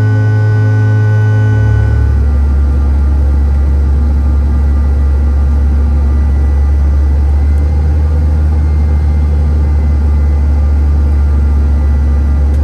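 Air rushes past the fuselage of a descending airliner.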